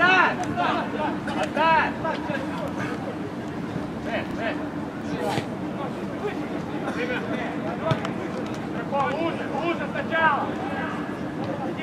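Men shout to each other across an open field, far off and echoing.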